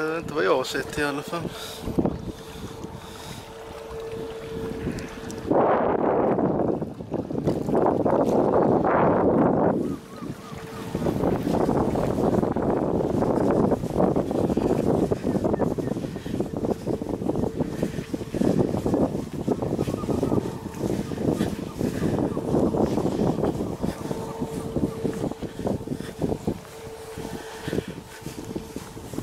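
Strong wind gusts and rumbles outdoors.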